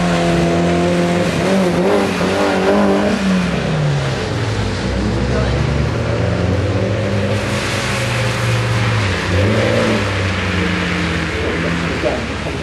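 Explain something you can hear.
Tyres hiss and spray on a wet surface.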